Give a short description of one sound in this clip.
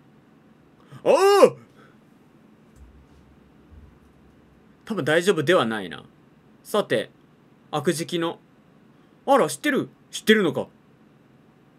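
A young man speaks in short bursts, close to a microphone.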